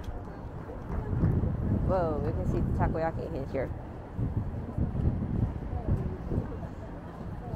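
Adults talk nearby on a busy street.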